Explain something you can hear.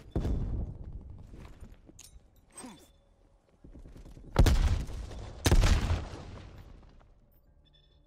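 Heavy explosions boom and rumble, fading away.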